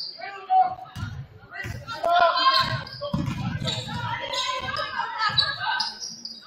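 A basketball thumps as it is dribbled on the court.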